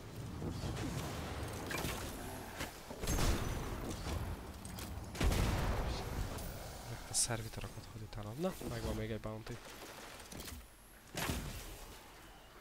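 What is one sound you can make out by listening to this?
Loud bursts of game gunfire and blasts ring out.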